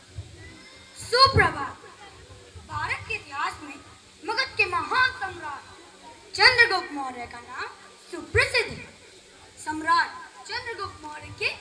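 A young boy recites loudly and with animation.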